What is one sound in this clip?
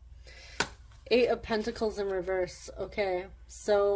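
A card is slid and laid down on a cloth-covered table.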